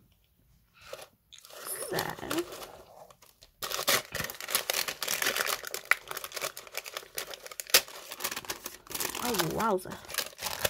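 Tissue paper rustles and crinkles as hands move it.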